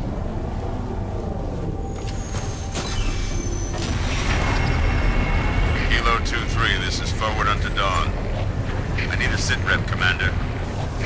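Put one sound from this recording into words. A hover vehicle's engine hums and whines steadily.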